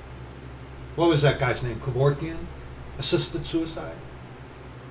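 A middle-aged man speaks calmly, close to the microphone.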